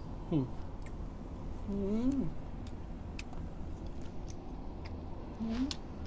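A young man chews and smacks his lips loudly close by.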